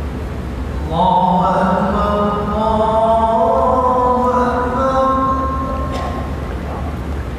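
An elderly man chants in a long, melodic voice through a microphone.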